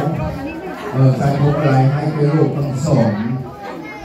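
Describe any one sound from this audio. An elderly man talks loudly close by.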